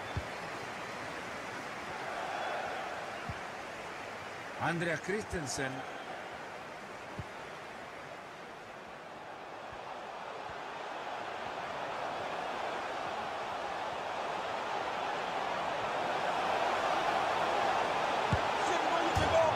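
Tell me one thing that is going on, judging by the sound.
A stadium crowd roars steadily and swells louder.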